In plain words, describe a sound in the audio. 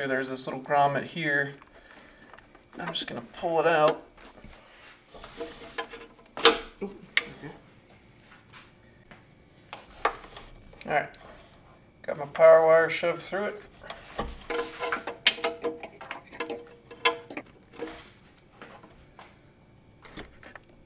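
Plastic parts and cables click and rustle as they are handled nearby.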